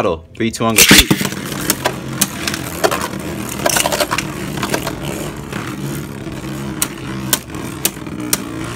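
Spinning tops whir and scrape around a plastic arena.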